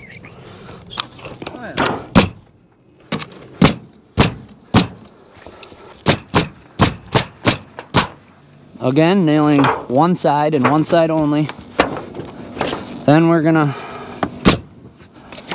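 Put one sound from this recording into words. A pneumatic nail gun fires nails in sharp, quick bangs.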